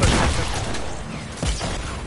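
A minigun whirs and rattles.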